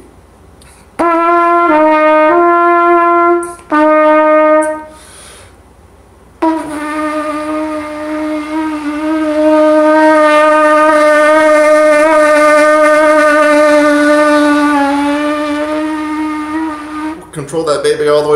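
A trumpet plays short notes and then a long held tone, close by.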